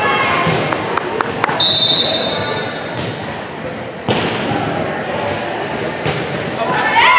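A volleyball is struck with sharp slaps in an echoing gym.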